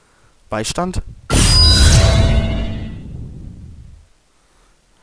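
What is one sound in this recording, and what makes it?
A magical whoosh swirls and rings out loudly.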